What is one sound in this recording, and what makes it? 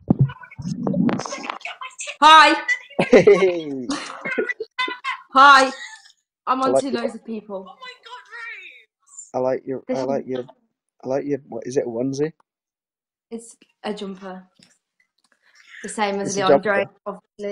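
A young woman talks and laughs over an online call.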